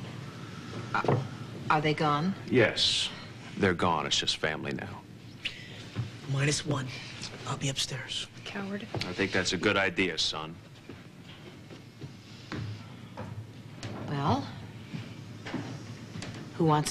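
A middle-aged woman speaks tensely, up close.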